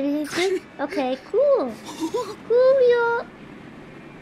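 A young man pleads weakly, gasping in pain.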